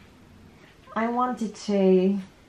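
A young woman speaks nearby in a high, playful voice.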